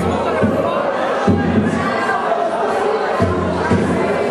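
Young men talk loudly nearby.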